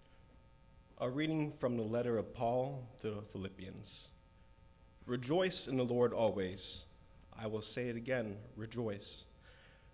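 A young man reads out calmly into a microphone in a reverberant room.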